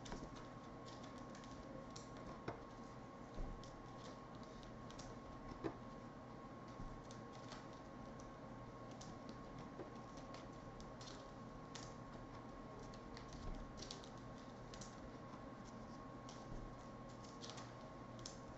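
Trading cards rustle and click as hands shuffle through them.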